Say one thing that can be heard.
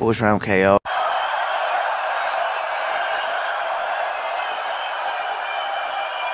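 A large crowd roars and cheers outdoors.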